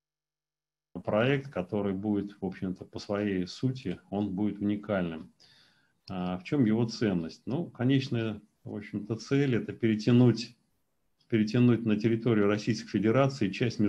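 A middle-aged man speaks steadily over an online call.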